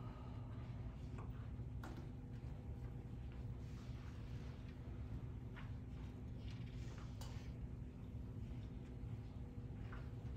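Footsteps shuffle across a hard floor.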